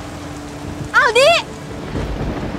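A young woman cries out in alarm nearby.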